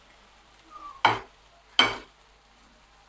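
Onion pieces drop into a pan with two sharp taps.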